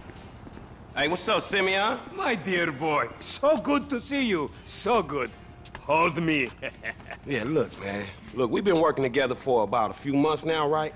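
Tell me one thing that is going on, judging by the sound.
A man greets someone cheerfully and talks with animation, close by.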